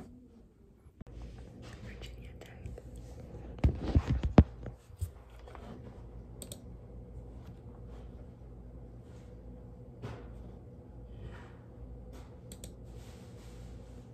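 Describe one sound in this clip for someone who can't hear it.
A young woman whispers softly, close to the microphone.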